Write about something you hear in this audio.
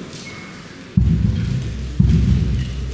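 A flute band suddenly starts playing together.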